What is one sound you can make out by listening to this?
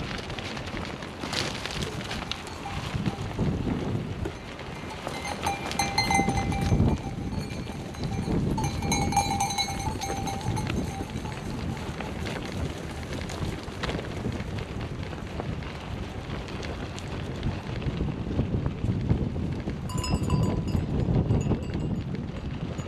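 Tyres crunch steadily over gravel.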